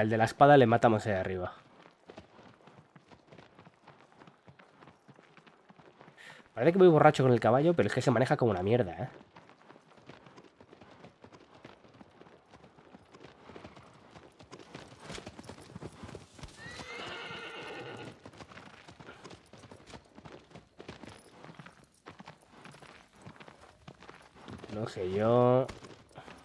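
Horse hooves thud at a gallop over the ground.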